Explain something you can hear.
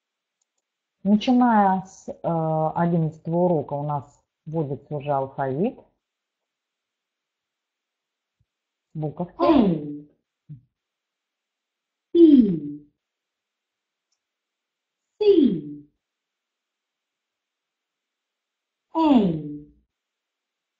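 A woman speaks clearly through an online call, pausing between words.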